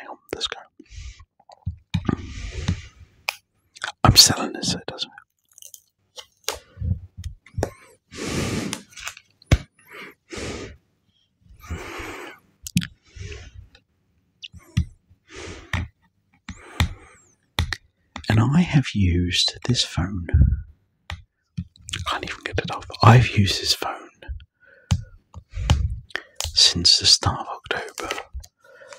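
A man whispers softly close to a microphone.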